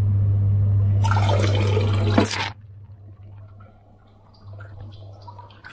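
Water rushes and swirls loudly down a toilet bowl, then quiets to a trickle.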